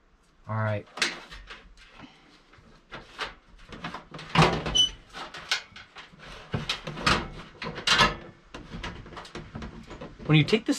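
Small metal parts click and clatter.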